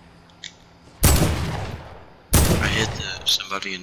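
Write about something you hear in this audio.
A rifle fires loud, booming shots that echo away.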